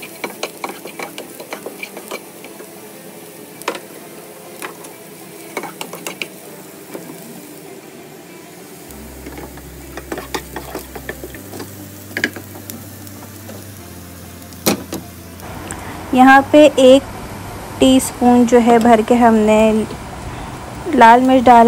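Chopped vegetables sizzle softly in a hot pan.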